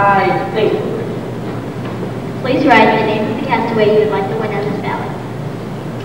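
A group of children sing together in an echoing hall.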